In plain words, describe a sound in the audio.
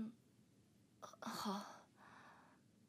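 A young woman answers softly up close.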